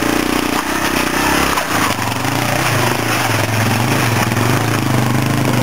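A motorcycle engine revs and chugs as a dirt bike climbs over rocks.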